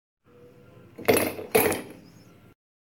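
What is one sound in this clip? A cup knocks on a wooden table.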